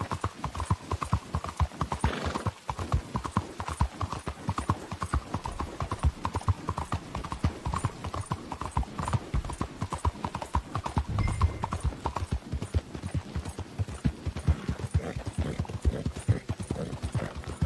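A horse gallops quickly with rhythmic hoofbeats on a wet street.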